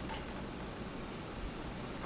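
Milk pours into a steel bowl.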